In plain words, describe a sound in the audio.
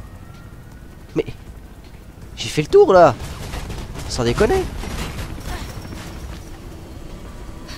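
Footsteps run across a hard rooftop.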